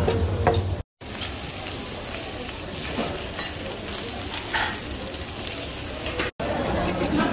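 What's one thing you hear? Food sizzles on a hot griddle.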